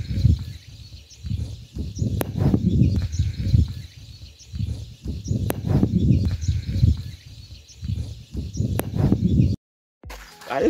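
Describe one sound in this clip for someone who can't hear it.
Wind gusts roar across the microphone outdoors.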